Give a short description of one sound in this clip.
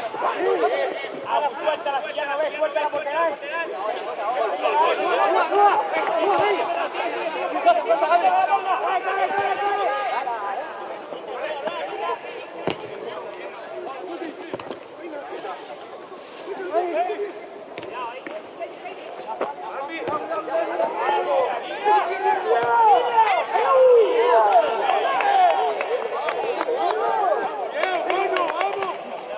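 Players shout and call to each other across an outdoor pitch.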